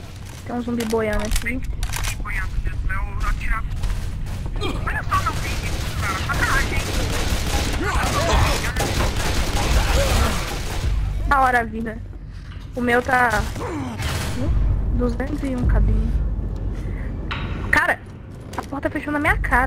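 A submachine gun fires in short bursts.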